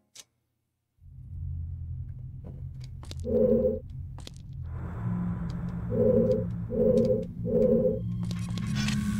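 Game music plays with low droning tones and short beeping notes.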